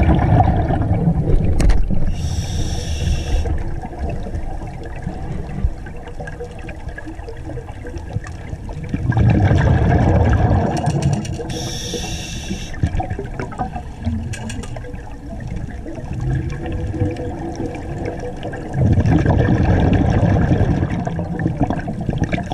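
Air bubbles gurgle and rumble in bursts underwater, close by.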